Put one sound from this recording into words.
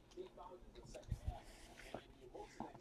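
Stacks of cards tap against a table.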